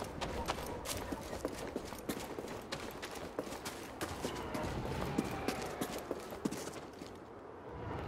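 Footsteps patter quickly across stone.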